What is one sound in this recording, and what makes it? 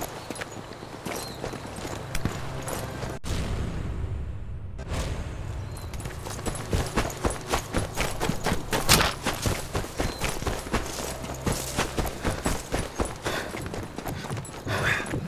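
Footsteps thud quickly on stone and grass.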